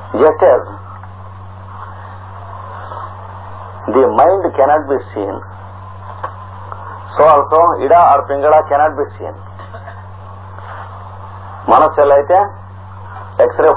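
An elderly man speaks calmly in short bursts, with pauses between.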